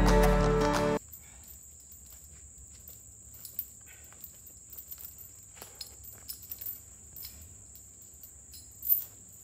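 Footsteps crunch on dry leaves and twigs close by.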